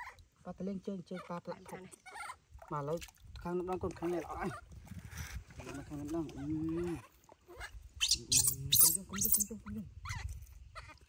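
A baby monkey squeals and cries.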